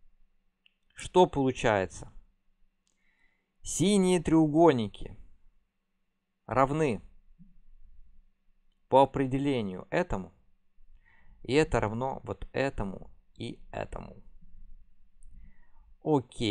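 A young man talks calmly into a close microphone, in short phrases with pauses.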